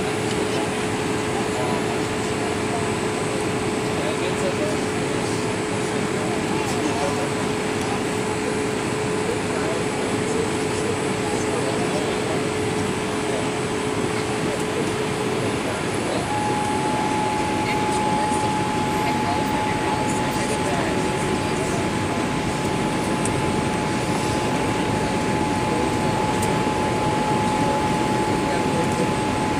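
A steady engine hum shifts to a higher pitch partway through.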